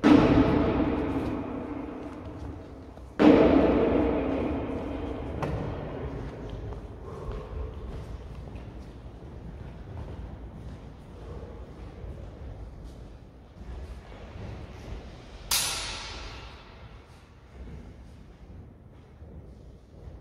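Shoes thud and squeak on a wooden floor.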